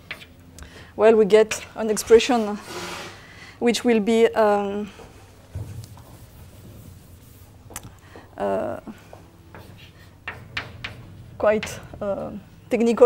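A woman lectures in a large room, heard through a microphone.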